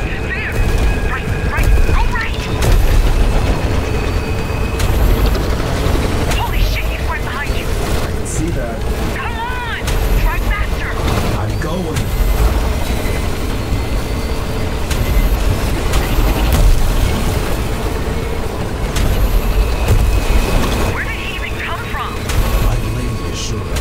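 A woman speaks urgently over a radio.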